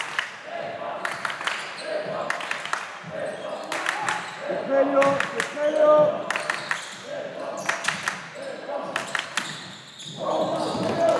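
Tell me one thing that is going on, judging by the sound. Young men shout to each other in a large echoing hall.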